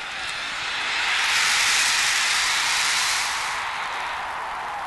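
A large crowd cheers and roars, then fades.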